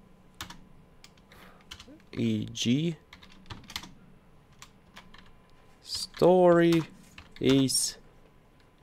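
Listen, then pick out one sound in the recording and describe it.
Keyboard keys click as a man types.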